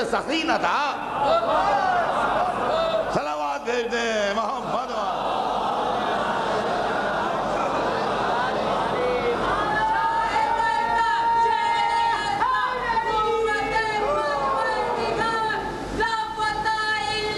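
An elderly man speaks forcefully and with emotion into a microphone.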